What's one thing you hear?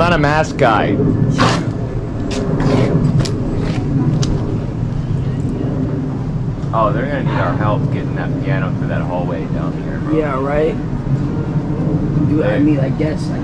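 A woman speaks loudly and with animation close by, outdoors.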